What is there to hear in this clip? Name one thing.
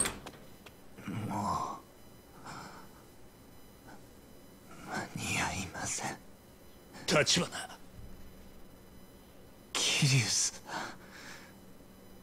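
A wounded young man speaks weakly and haltingly, close by.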